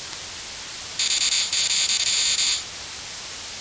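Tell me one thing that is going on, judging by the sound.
An electronic buzz sounds briefly.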